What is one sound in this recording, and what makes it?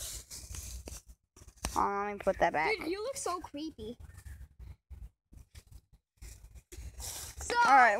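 Footsteps rustle through low plants.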